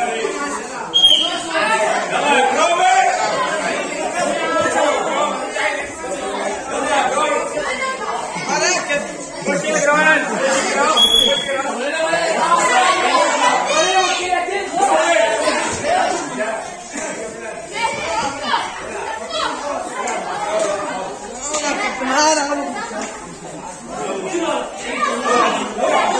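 A crowd of men and boys talks and calls out around the room.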